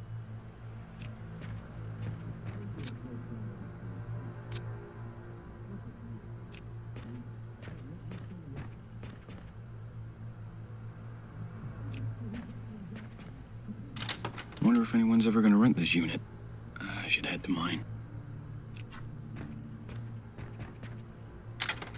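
Footsteps tread softly on a carpeted floor.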